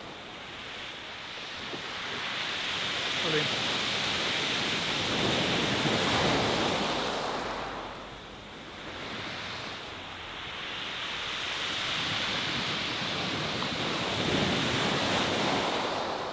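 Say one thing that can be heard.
Waves wash onto a pebble beach, surging and falling back.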